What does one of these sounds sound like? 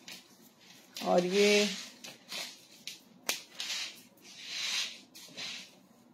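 Fabric rustles and swishes as it is handled.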